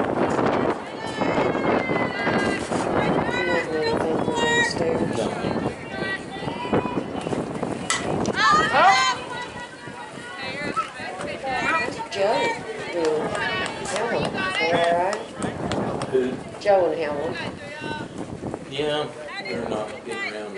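Young women shout and chant loudly from a distance.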